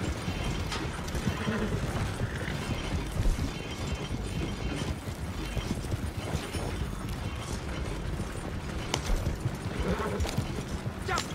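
Wooden wagon wheels rumble and creak over a dirt track.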